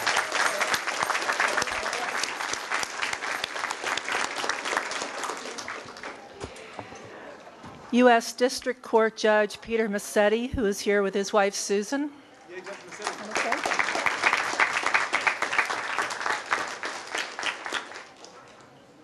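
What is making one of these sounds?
An audience claps and applauds in a room.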